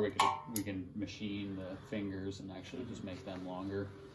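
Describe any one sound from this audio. A metal box clunks down onto a hard floor.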